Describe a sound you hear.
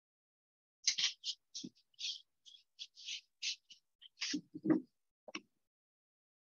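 A paintbrush swishes and scratches across paper in short strokes.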